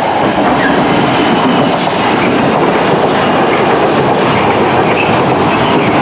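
Freight wagons rattle and clatter past close by.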